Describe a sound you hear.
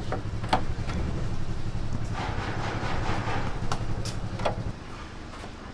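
Liquid sloshes and splashes as hands lift meat from a large pot.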